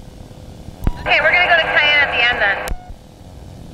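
A man speaks loudly through a headset microphone.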